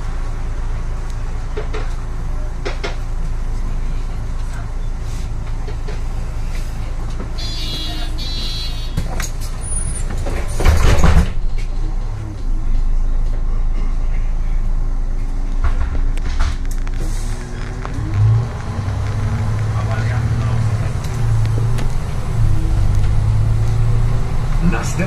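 Bus tyres roll over the road.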